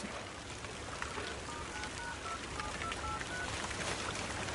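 Phone keys beep as a man dials.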